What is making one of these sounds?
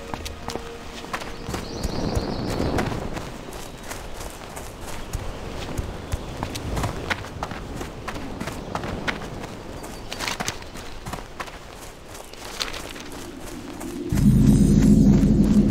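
Footsteps patter quickly along a stone path.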